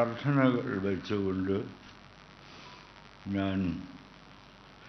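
An elderly man speaks slowly and deliberately into a microphone, with pauses.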